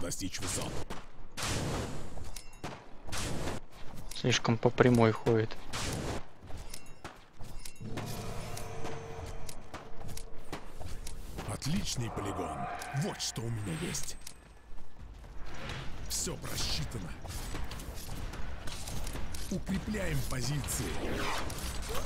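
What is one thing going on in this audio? Spells and attacks in a video game burst and crackle.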